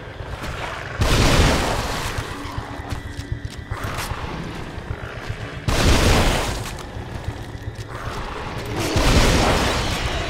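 A shotgun fires with loud booming blasts.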